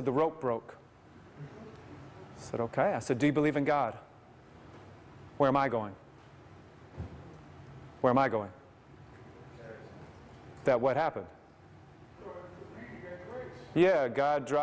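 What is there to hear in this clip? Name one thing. A man speaks calmly through a microphone, in bursts with pauses, in a slightly echoing room.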